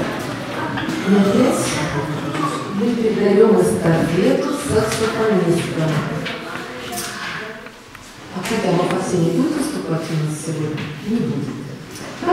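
A woman speaks into a microphone, heard through loudspeakers in an echoing hall.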